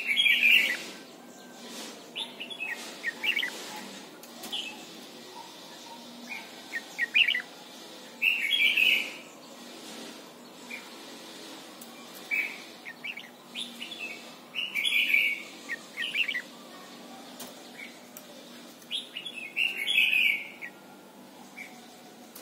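A caged songbird sings in loud, short bursts of whistles and chirps.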